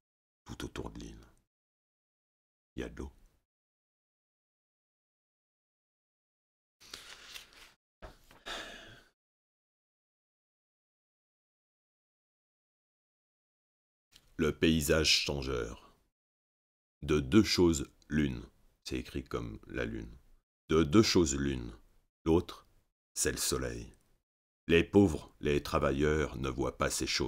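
A man reads aloud calmly, close to a microphone, in short phrases with pauses.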